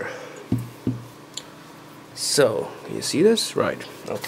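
A cloth rubs across a small board.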